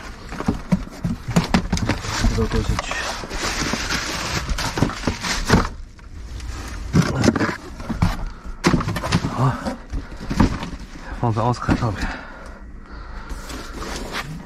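Packed items clatter and rustle inside a cardboard box.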